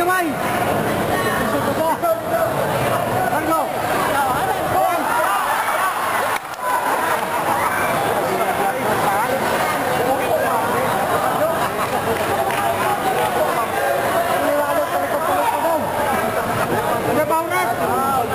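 A crowd of people shouts and cheers loudly throughout.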